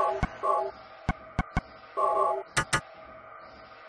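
Menu selection beeps sound.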